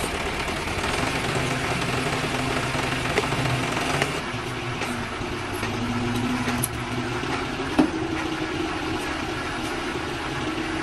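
A crane engine drones steadily as a load is lifted.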